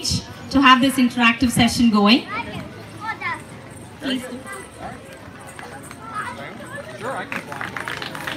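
A woman speaks with animation into a microphone over a loudspeaker outdoors.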